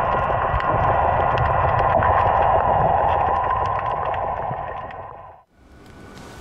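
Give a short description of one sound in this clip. A diver swims underwater with a muffled rushing of water.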